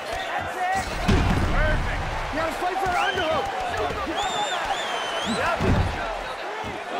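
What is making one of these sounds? Punches and kicks land with heavy thuds.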